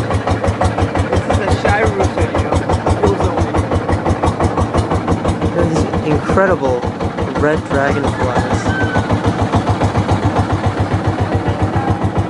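A boat engine chugs loudly and steadily.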